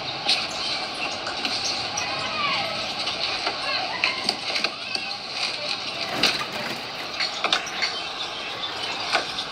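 Plastic packaging rustles and crinkles close by.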